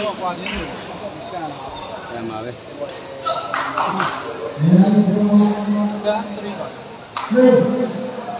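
A large crowd murmurs and chatters in an echoing hall.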